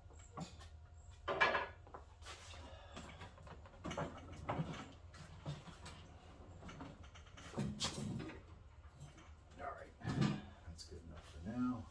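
Metal parts knock and clunk as a man handles heavy machinery.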